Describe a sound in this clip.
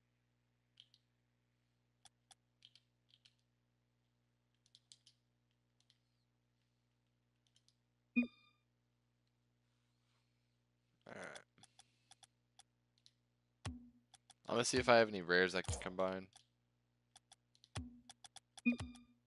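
Soft menu clicks and blips sound now and then.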